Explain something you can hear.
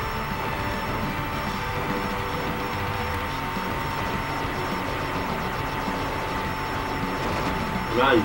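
Rapid blips of laser fire sound over and over.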